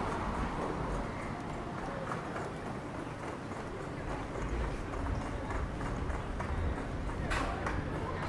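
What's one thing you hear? People chat and murmur at a distance.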